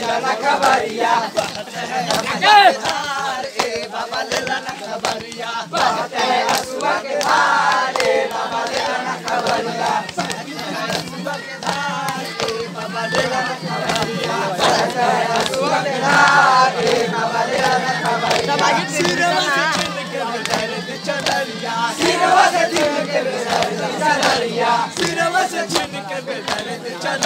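A young man sings out loudly with animation.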